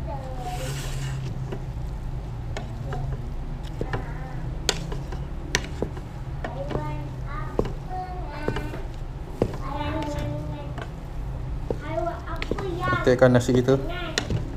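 A wooden spoon scrapes and knocks against the inside of a metal pot.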